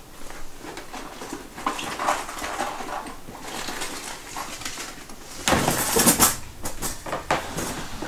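Dishes and utensils clink and clatter on a counter.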